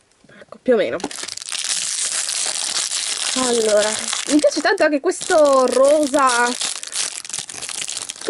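A foil packet crinkles and tears as it is opened.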